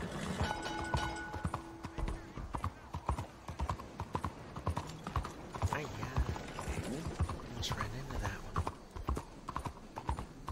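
Horse hooves clop steadily on a paved street.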